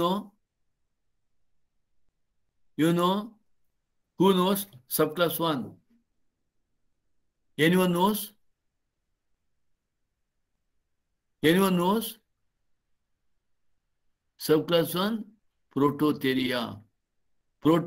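A middle-aged man speaks calmly in short phrases through an online call.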